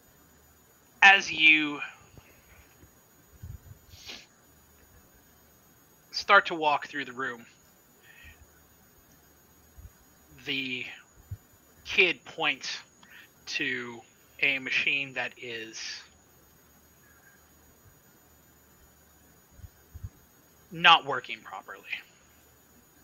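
A man talks with animation over an online call, heard through a microphone.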